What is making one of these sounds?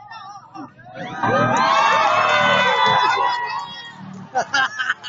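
A crowd of young people cheers and screams loudly.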